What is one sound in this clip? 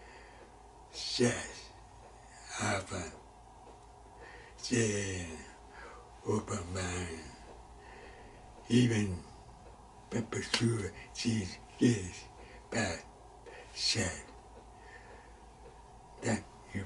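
An elderly man speaks close to a microphone in short, strained bursts with pauses.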